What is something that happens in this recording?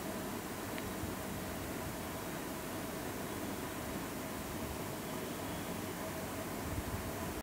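A man speaks softly through a microphone.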